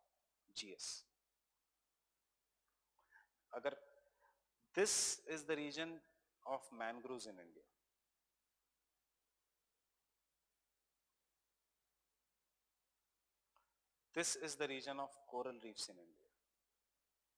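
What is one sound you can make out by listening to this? A man speaks calmly into a microphone in short bursts with long pauses.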